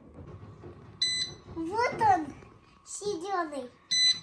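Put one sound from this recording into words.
An electronic control panel beeps as a button is pressed.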